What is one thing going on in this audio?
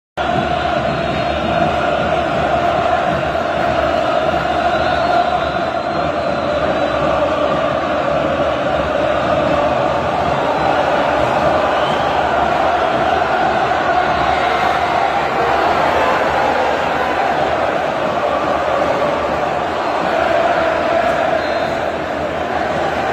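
A large stadium crowd chants loudly in unison.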